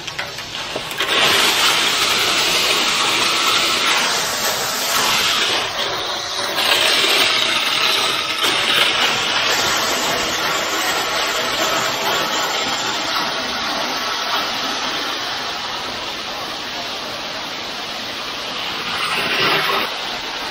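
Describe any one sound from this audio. Wet concrete pours and rushes down a metal chute.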